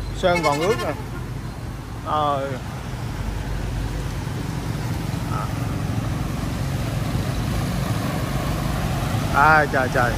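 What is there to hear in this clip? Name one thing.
Water swishes and splashes under wheels driving through a flooded street.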